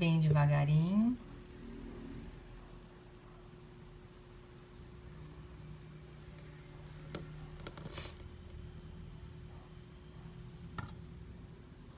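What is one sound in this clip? Thick batter pours slowly into a metal pan.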